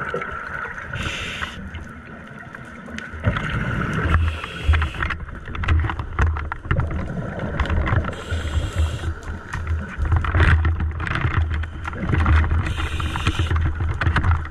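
Air bubbles rush and gurgle in bursts from a diver's breathing underwater.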